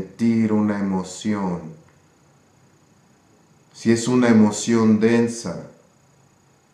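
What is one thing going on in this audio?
A middle-aged man speaks calmly and closely into a microphone, in short phrases with pauses.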